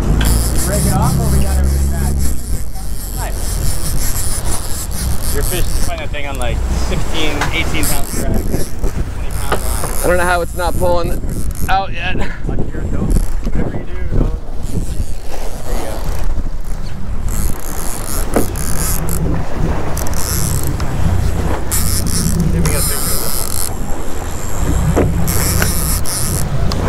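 Water churns and splashes behind a moving boat.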